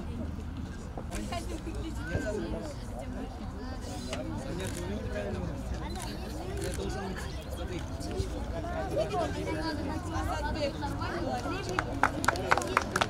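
A young woman speaks clearly, announcing.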